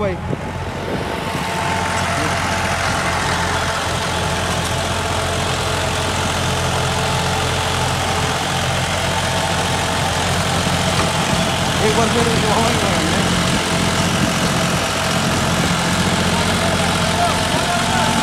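A rotary tiller churns through soil with a steady rattling roar.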